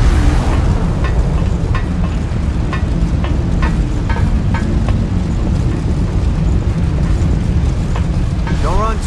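Footsteps tap on a hard floor at a steady walking pace.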